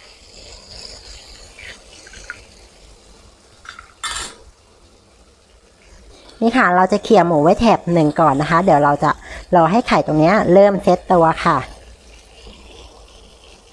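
Eggs sizzle in hot oil.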